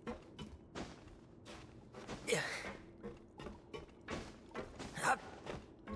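Footsteps thump up wooden stairs.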